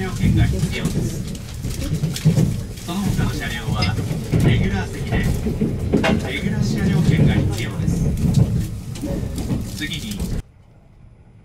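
A train rumbles loudly along the tracks, heard from inside a carriage.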